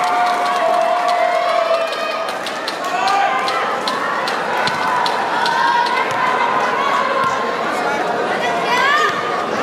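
Young women cheer and call out to each other.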